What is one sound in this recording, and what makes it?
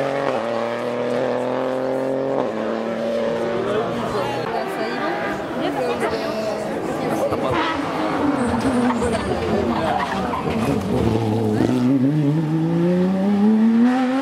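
A rally car engine roars loudly as the car speeds past, its pitch rising and falling with gear changes.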